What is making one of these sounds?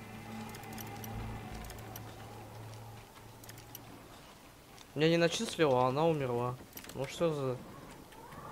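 A metal lockpick scrapes and clicks inside a lock.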